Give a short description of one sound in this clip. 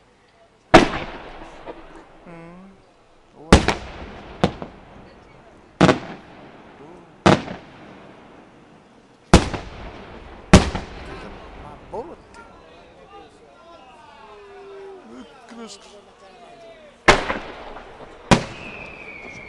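Fireworks burst with loud booming bangs that echo away outdoors.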